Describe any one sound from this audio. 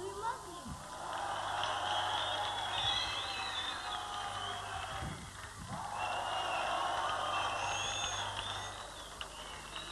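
A large audience cheers and whistles in a big hall.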